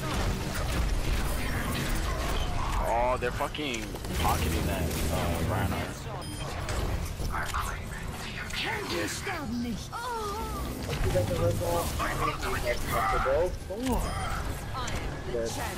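A game weapon fires rapid energy blasts.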